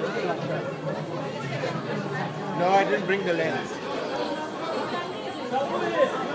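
Footsteps shuffle along in a crowd.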